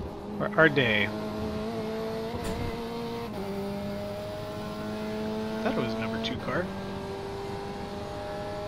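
A racing car engine drones steadily and shifts gears.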